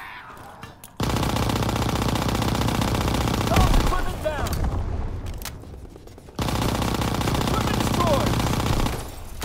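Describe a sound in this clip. A submachine gun fires in rapid, loud bursts.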